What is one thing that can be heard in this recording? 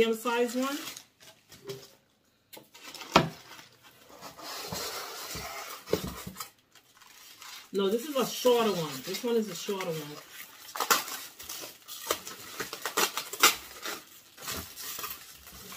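Cardboard and packing paper rustle and scrape as a box is unpacked.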